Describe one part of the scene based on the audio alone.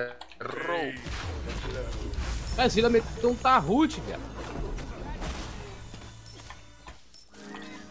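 Spells whoosh and crackle as fighters clash.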